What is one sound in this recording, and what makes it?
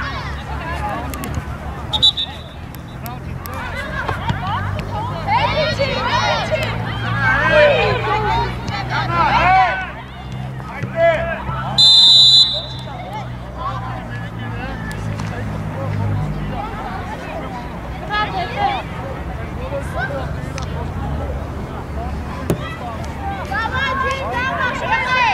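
Players shout and call to each other across an open field.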